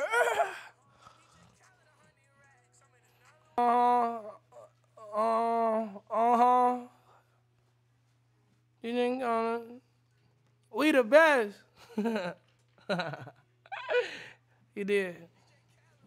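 A young man sings in short phrases close to a microphone.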